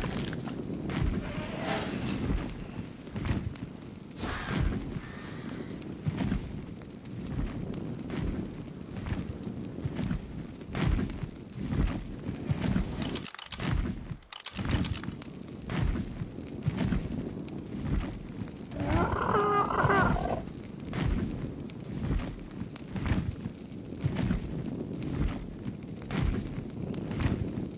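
Large leathery wings flap in a steady rhythm.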